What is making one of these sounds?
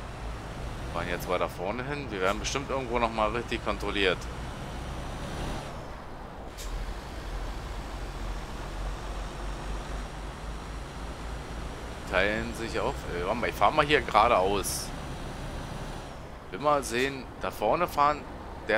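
A truck engine rumbles low and steadily.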